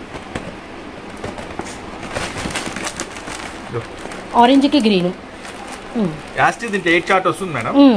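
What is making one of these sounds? Plastic wrapping rustles and crinkles as boxes are handled.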